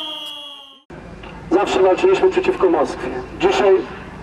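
A crowd of men shouts together outdoors.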